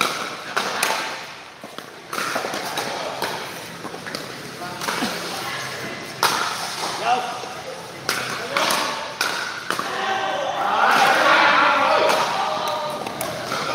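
Paddles smack a plastic ball back and forth with sharp pops.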